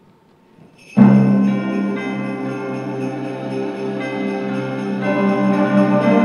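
A choir sings along with the band.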